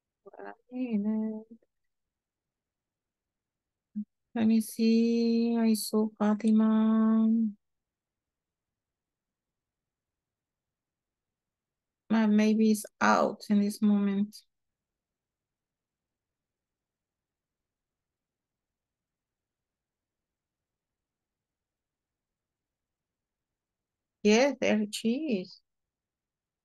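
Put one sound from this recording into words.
A woman speaks calmly through an online call, in short bursts with long pauses.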